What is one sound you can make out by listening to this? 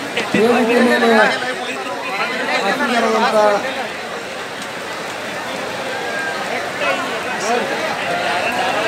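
A crowd murmurs and clamours outdoors.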